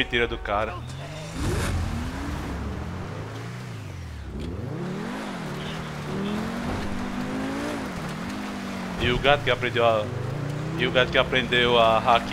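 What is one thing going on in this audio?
A sports car engine revs and roars as the car speeds off.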